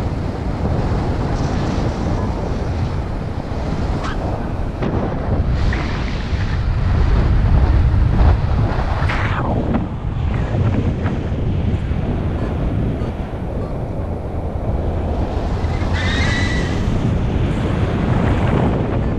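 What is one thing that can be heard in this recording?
Wind rushes loudly and steadily past, buffeting hard close by.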